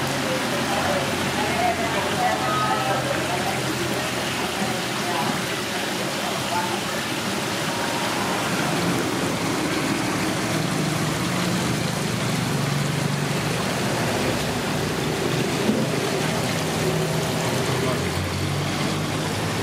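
Water bubbles and gurgles steadily in an aerated tank.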